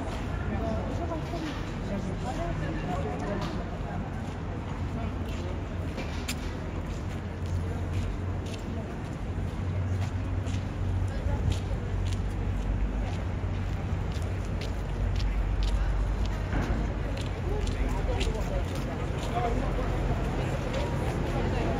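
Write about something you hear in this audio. Footsteps tap on stone paving outdoors.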